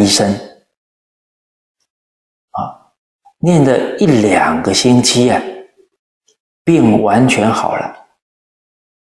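An elderly man reads aloud calmly and closely into a microphone, with pauses.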